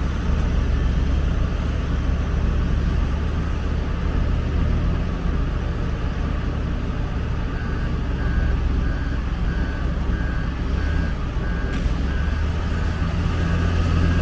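Grain pours from a loader bucket into a cart with a rushing hiss.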